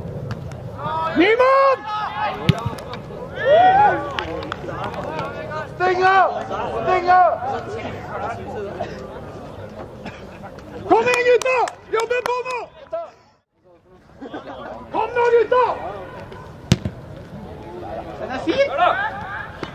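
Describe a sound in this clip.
Young men shout loudly to each other outdoors.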